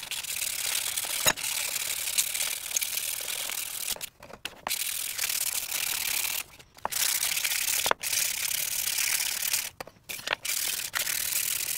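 Sandpaper rubs briskly against a wooden handle in short scratchy bursts.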